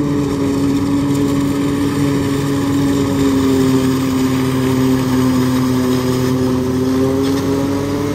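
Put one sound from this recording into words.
Corn stalks crunch and shred as a harvester cuts them.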